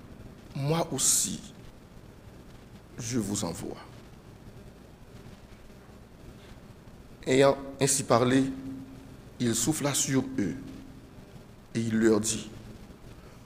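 A man speaks calmly and slowly through a microphone, in short phrases with pauses, in an echoing room.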